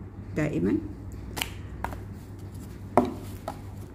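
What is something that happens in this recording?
A cardboard box taps and rustles as it is handled.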